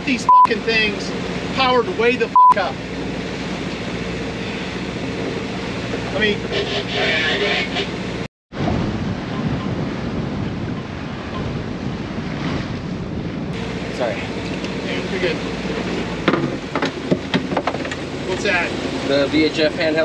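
Water splashes against the hull of a moving boat.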